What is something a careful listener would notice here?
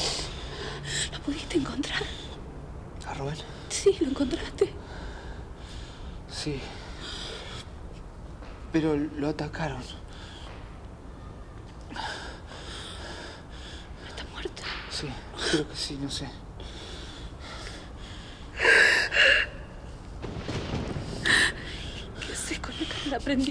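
A young woman speaks quietly and anxiously close by.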